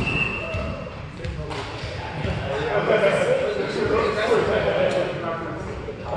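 Young men talk together, their voices echoing in a large hall.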